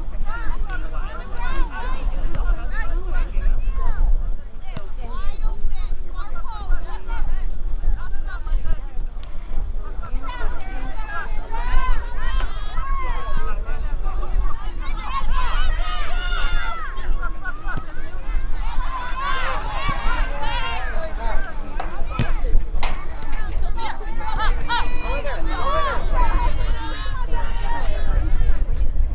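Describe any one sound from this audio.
Young women shout and call to each other outdoors.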